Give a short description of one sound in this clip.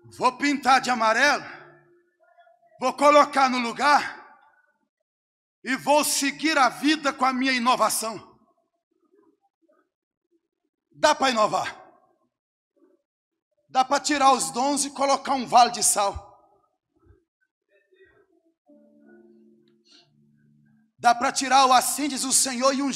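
A man preaches with animation through a microphone, in bursts with pauses, in a large echoing space.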